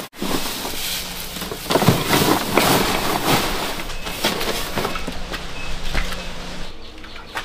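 Dry straw rustles and crackles as it is handled close by.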